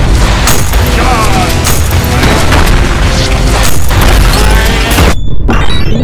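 Gunshots and blasts crack rapidly and loudly.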